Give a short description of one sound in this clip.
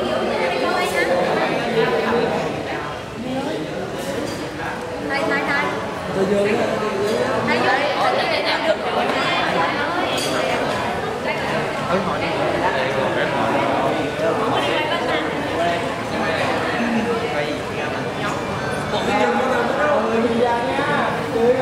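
A crowd of young men and women chatter and laugh nearby.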